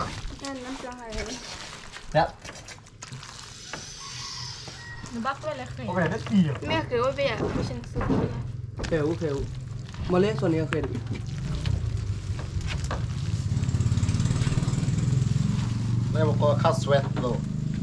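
Hands squish and toss noodles in a metal bowl.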